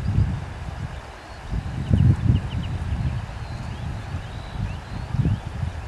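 Wind gusts outdoors, rumbling in low buffets.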